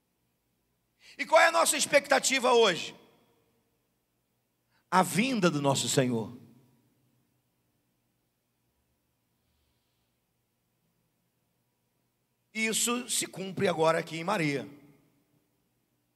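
A middle-aged man speaks with emphasis into a microphone, in short bursts with long pauses.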